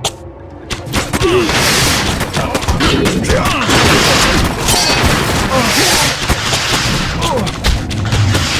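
Soldiers shout and cry out in battle.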